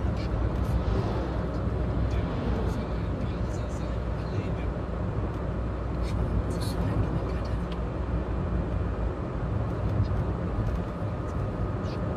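Tyres roll and rumble on asphalt.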